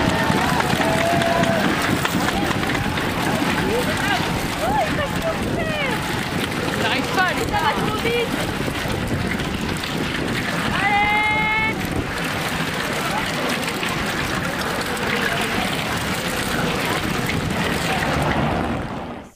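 A crowd of spectators cheers and shouts loudly close by.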